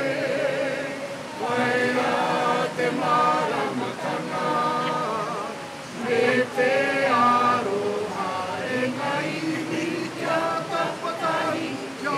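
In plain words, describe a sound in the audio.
A group of men and women sing together loudly outdoors.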